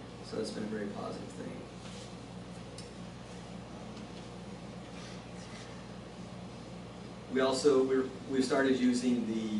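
A middle-aged man speaks calmly into a microphone in an echoing room.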